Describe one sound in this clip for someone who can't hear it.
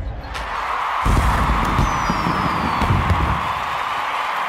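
Fireworks burst and crackle overhead.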